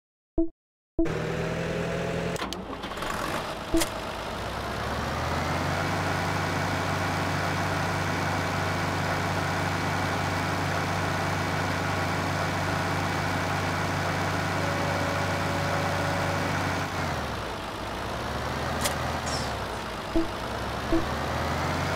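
A tractor engine runs with a steady hum, revving up and down.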